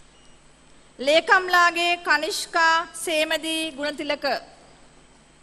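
A woman reads out through a loudspeaker in a large echoing hall.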